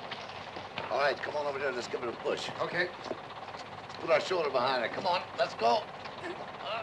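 A man speaks nearby in a raised voice.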